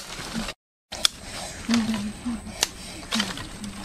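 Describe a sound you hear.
Dry sticks snap and crack.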